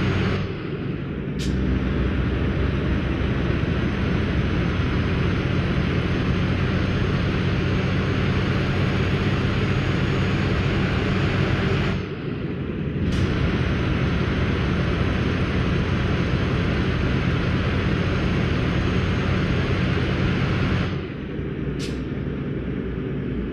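A truck engine rumbles steadily and briefly dips as gears shift.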